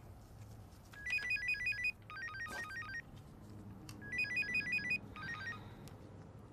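A phone rings with a chiming tune.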